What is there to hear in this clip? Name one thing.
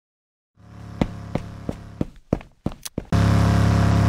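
Quick footsteps patter on a hard surface.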